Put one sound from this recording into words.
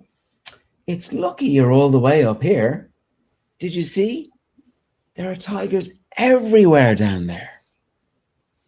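A man reads aloud expressively, close by.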